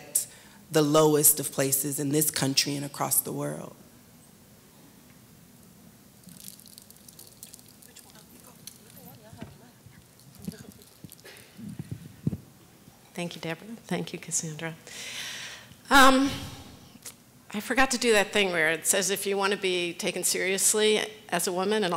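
A woman speaks with animation through a microphone in a large hall.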